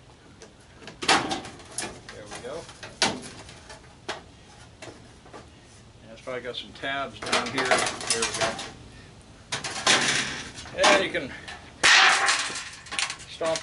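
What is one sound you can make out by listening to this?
Metal clanks and rattles as a dryer's top panel is handled.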